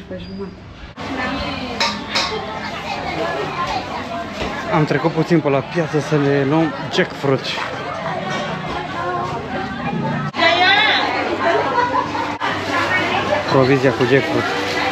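Voices of a busy crowd chatter all around.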